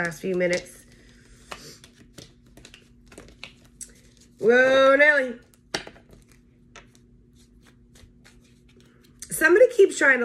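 Cards shuffle and tap against each other.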